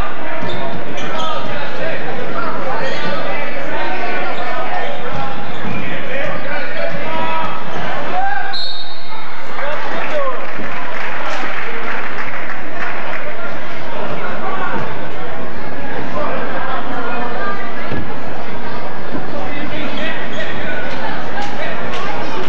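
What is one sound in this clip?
A crowd of spectators cheers and chatters loudly in a large echoing gym.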